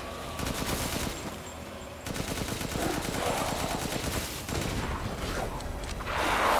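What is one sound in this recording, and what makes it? Rapid gunfire rattles.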